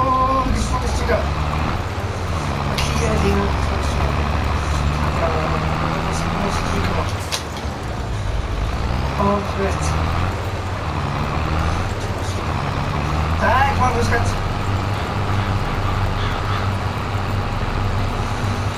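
A cultivator rattles over the ground.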